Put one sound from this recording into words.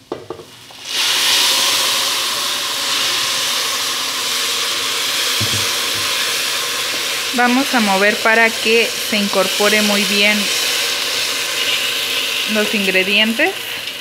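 Liquid sizzles and hisses loudly in a hot pan.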